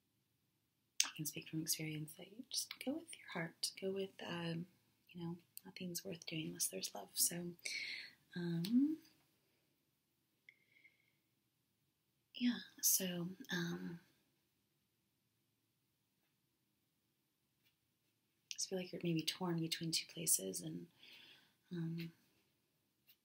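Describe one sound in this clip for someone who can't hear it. A young woman speaks softly close to the microphone.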